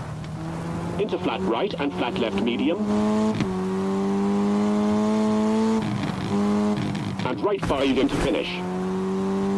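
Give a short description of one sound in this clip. Tyres scrabble and spray loose gravel as a car slides through bends.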